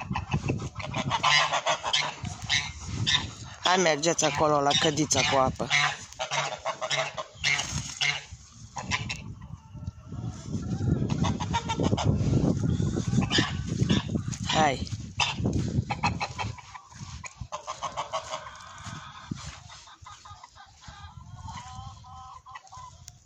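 Geese honk loudly and repeatedly nearby.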